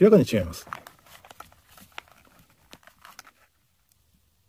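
Toy pistols click and tap together as they are handled.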